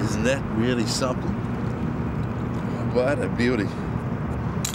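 A man speaks calmly, close by, in short bursts.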